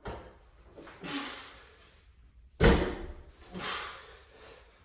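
A man exhales forcefully with each effort.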